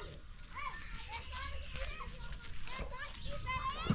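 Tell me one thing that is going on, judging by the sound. A cloth sack flaps as a woman shakes it out.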